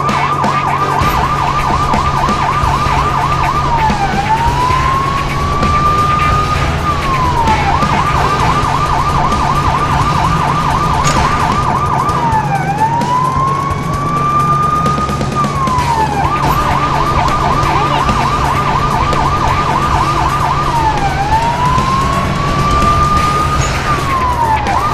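A police siren wails, switching between a fast yelp and a slow rising wail.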